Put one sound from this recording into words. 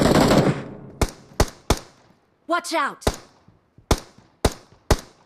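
Rifle shots ring out one after another.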